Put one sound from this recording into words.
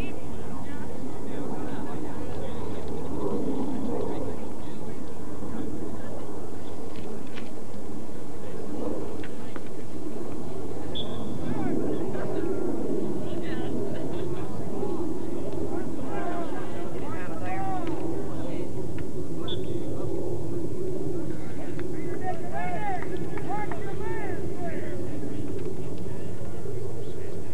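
A crowd of young men chatter and call out across an open field.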